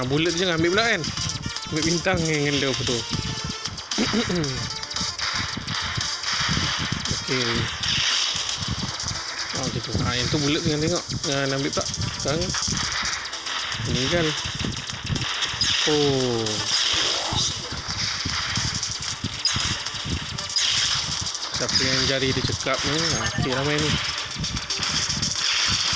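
Rapid arcade gunfire rattles steadily.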